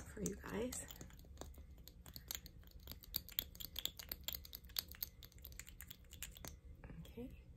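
A small plastic tube clicks and taps as it is opened and handled.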